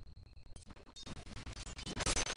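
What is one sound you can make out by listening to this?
Game sound effects of magic blasts and clashing weapons ring out.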